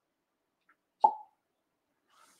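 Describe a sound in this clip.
A game tile clacks down onto a table.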